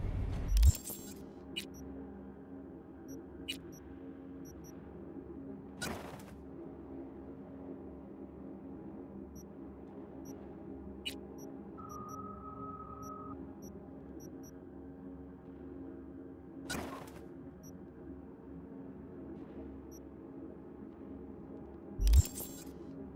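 Short electronic whooshes and clicks sound now and then.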